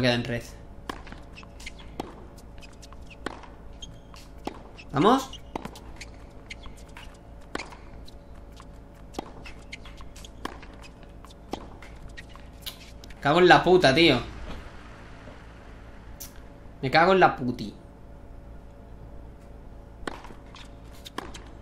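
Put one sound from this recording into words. A tennis ball is struck back and forth with rackets in a steady rally.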